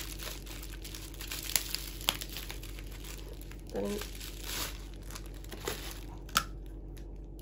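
Plastic wrapping crinkles and rustles as it is unwrapped by hand.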